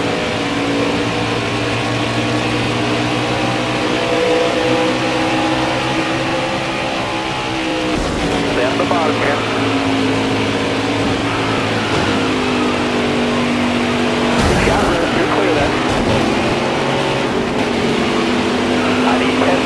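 Racing engines roar steadily at high speed.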